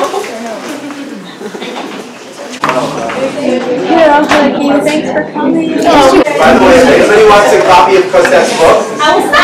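A crowd of women and men talk and laugh excitedly close by.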